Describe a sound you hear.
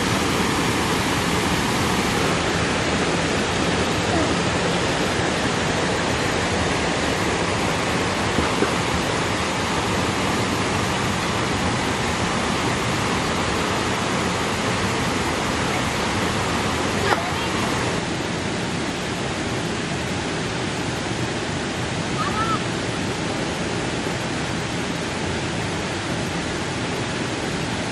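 A stream rushes and babbles over rocks.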